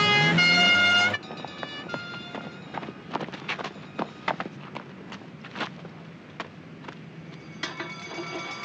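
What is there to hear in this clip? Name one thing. Footsteps crunch quickly on gravel as a man runs.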